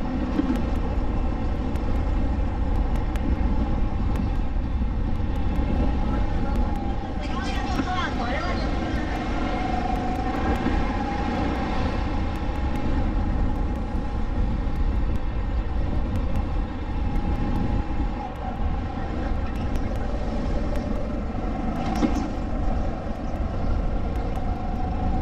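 Wind buffets past at speed.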